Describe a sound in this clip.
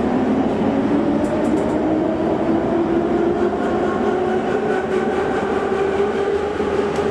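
A subway train rumbles and whines loudly along the tracks.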